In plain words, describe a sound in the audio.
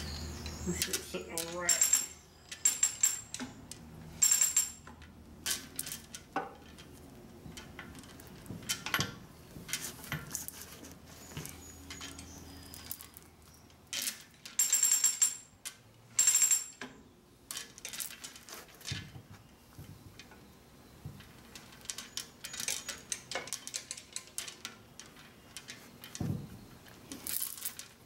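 Metal parts knock and clang.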